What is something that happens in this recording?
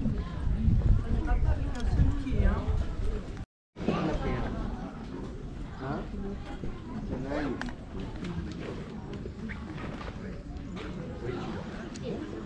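Footsteps shuffle on cobblestones.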